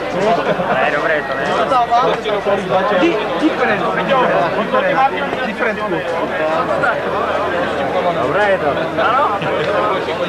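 Young men talk with each other close by.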